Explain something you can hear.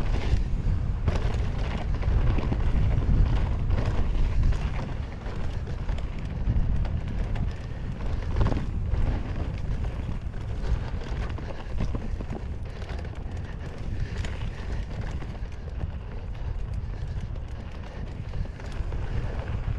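Bicycle tyres roll and crunch fast over a dirt trail.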